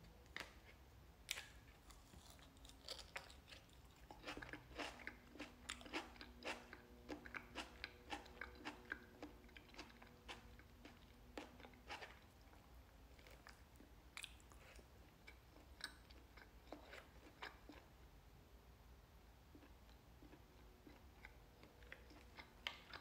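A fork clicks and scrapes against a plastic bowl.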